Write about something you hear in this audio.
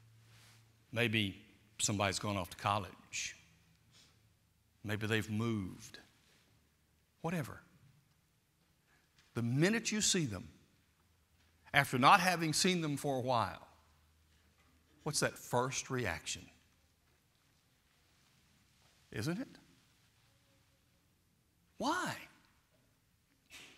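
An older man preaches with animation into a microphone, in bursts with pauses, in a large echoing hall.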